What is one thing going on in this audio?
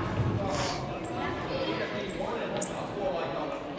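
Sports shoes squeak sharply on a hard floor.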